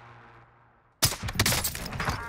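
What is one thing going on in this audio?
A sniper rifle fires with a loud, sharp crack.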